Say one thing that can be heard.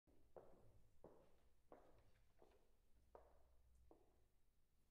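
Footsteps knock on a wooden floor in a large, echoing hall.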